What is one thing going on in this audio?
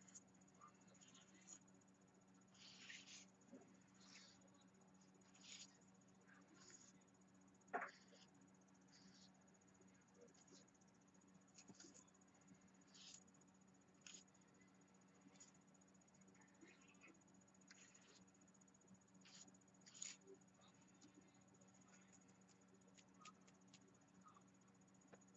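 A brush dabs and scrapes on paper in short, quiet strokes.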